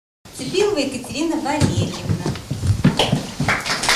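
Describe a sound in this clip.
A woman speaks warmly, close by.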